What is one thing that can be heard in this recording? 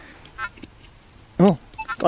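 A trowel scrapes into dry soil.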